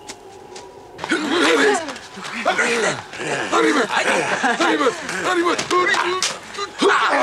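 Several men shout and whoop loudly close by.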